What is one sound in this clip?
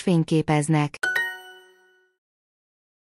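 A short bright chime rings out and fades.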